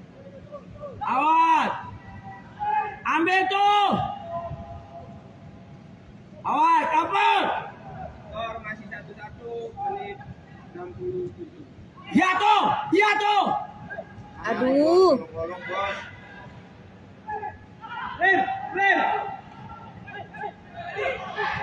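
Men shout loudly to each other at a distance, echoing in a large open space.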